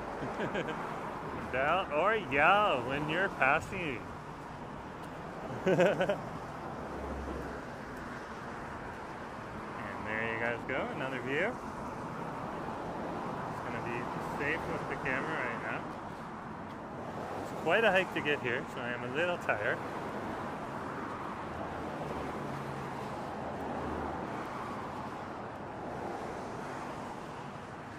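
Traffic rushes steadily past nearby.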